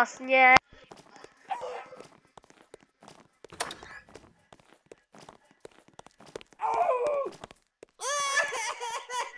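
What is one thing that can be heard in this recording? Footsteps patter quickly on a wooden floor.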